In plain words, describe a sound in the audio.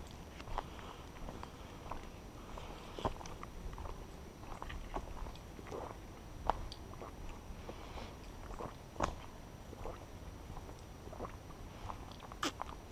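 Dry leaves and twigs crunch and snap on a forest trail.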